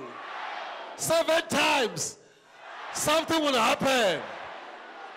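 A man preaches loudly and with passion through a microphone and loudspeakers.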